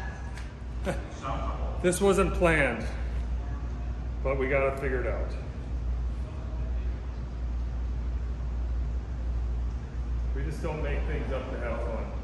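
A middle-aged man talks casually, close by.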